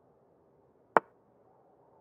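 A chess piece lands on its square with a sharp click.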